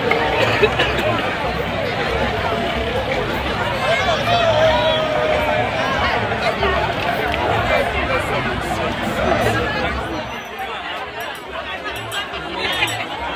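A crowd of men and women chatters and shouts outdoors.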